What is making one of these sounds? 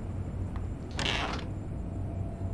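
A door opens with a thump.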